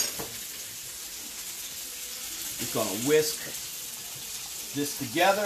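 A spoon scrapes and mashes food in a bowl.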